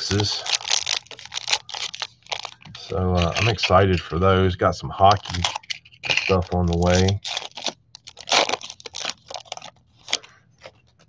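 A plastic wrapper crinkles and tears as it is pulled open.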